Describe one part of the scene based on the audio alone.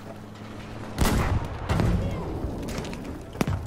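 Heavy explosions boom nearby and rumble.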